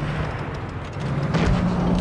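Tank tracks clank and rattle over ground.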